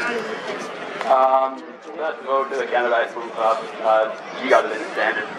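A man speaks through a loudspeaker.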